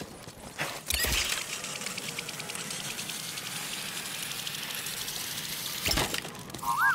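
A pulley whirs along a cable.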